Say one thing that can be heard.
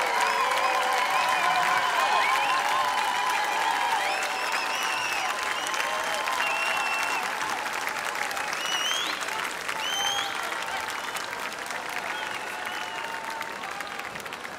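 Audience members whistle loudly.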